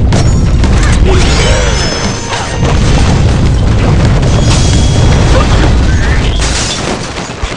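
Cartoon explosions boom and crash in a video game.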